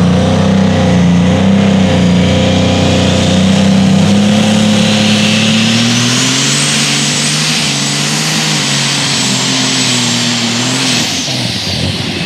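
A tractor engine roars loudly and revs up and down.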